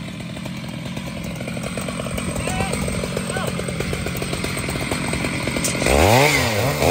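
A chainsaw engine roars while cutting through wood.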